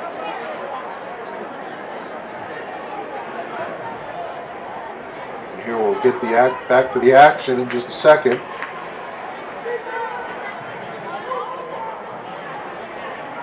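A crowd murmurs and chatters in a large echoing rink.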